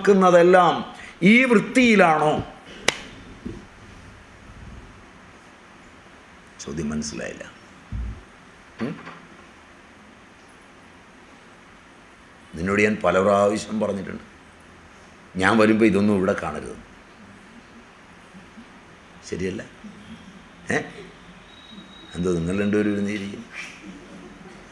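An elderly man speaks with animation into a microphone, pausing between phrases.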